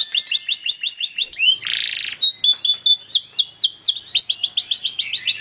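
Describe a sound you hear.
A small songbird sings close by in rapid, repeated chirping trills.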